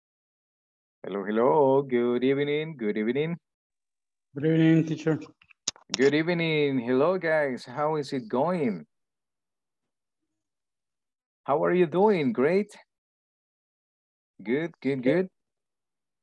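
A young man speaks calmly through an online call, in short bursts with pauses.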